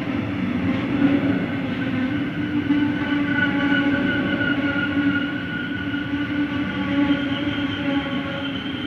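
An electric train rolls past close by with a steady rumble and whine.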